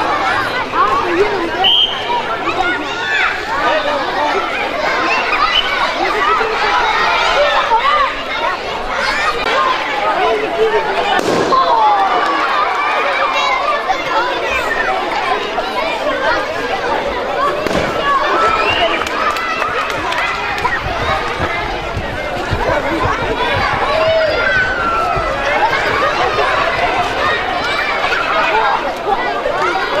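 A crowd of children chatters and calls out loudly outdoors.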